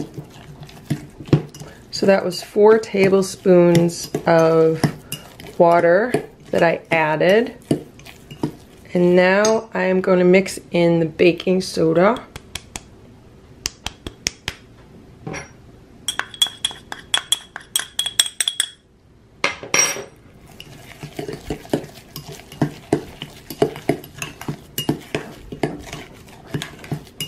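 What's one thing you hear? A fork stirs a mixture, scraping and clicking against a glass bowl.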